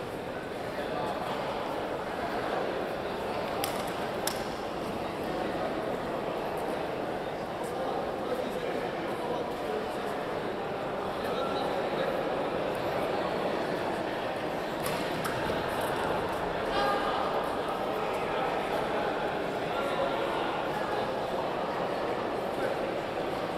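Several young men talk and call out around the court.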